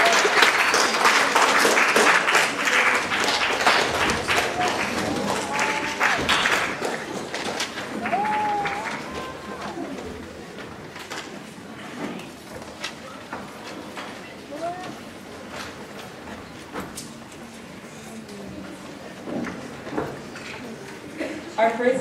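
Chairs and music stands knock and scrape as musicians sit down.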